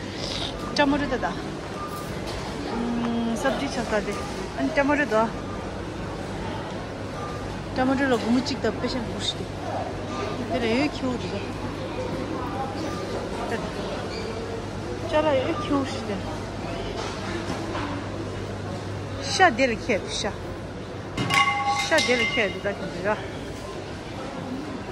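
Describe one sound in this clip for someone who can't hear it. Men and women chat nearby amid a steady indoor murmur.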